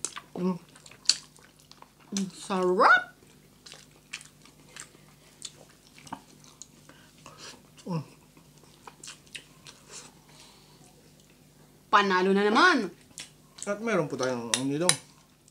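Two people chew and smack food loudly close to a microphone.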